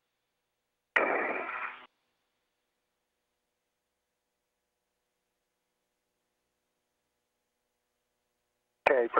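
A man speaks briefly over a crackly radio link.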